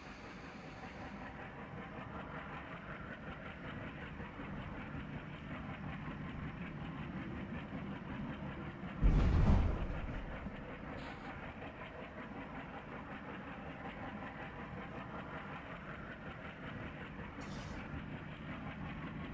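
Freight wagons rumble and clank slowly along a track.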